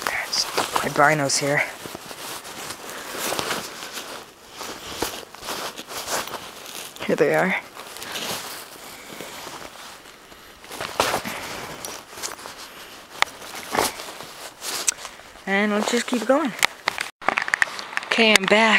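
Heavy winter clothing rustles close by.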